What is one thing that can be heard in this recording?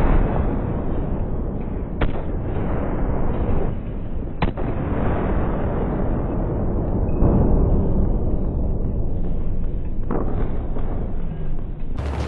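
Gunfire crackles in bursts.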